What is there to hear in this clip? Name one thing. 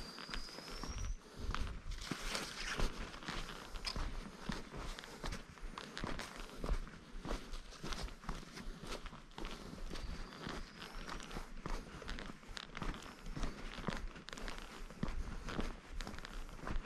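Footsteps crunch steadily on bare rock.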